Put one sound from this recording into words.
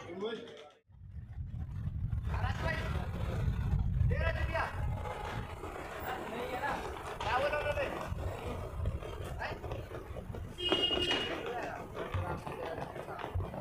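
Suitcase wheels rumble over paving stones.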